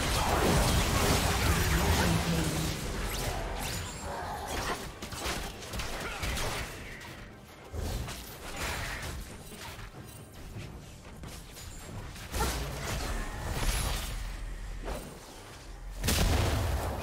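Spell blasts and hits crackle and boom in a game fight.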